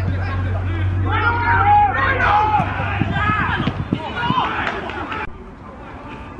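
Young men shout to each other across an open pitch.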